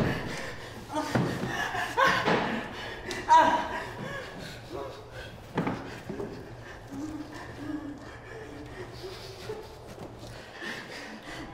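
A man groans and gasps in pain close by.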